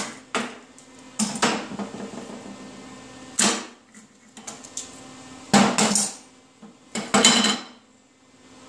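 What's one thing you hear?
Metal parts clank and scrape against a steel plate.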